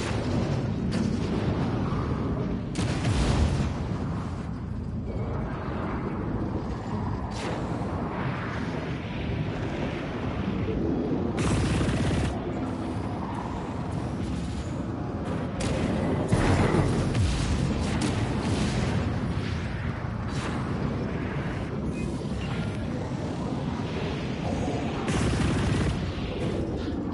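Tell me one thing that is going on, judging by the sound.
A spacecraft engine roars steadily as it flies.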